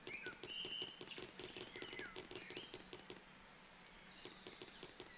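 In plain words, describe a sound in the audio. Small quick footsteps patter across grass.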